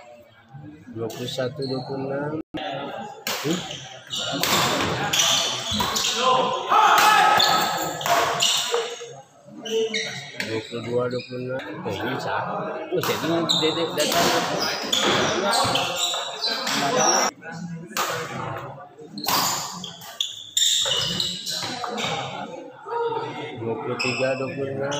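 Rackets smack a shuttlecock back and forth.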